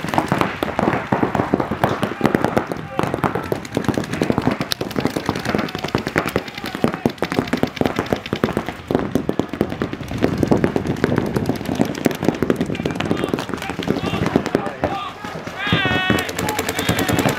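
Paintball guns fire in rapid bursts of sharp pops close by.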